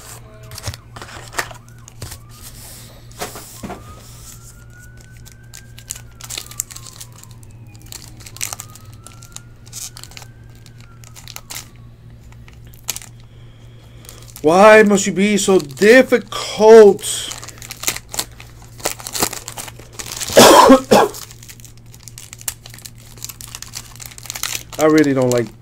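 Foil card wrappers crinkle and tear in someone's hands, close by.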